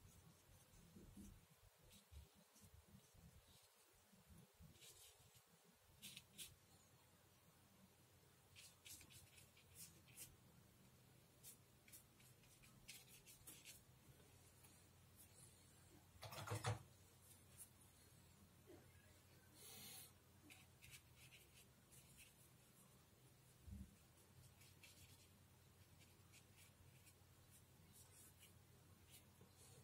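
A paintbrush dabs and strokes softly on paper.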